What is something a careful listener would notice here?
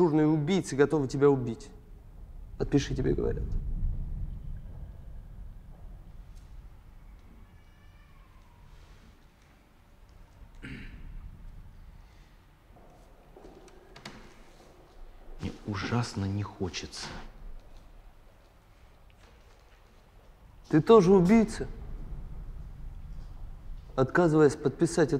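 A man speaks calmly nearby in a quiet, echoing room.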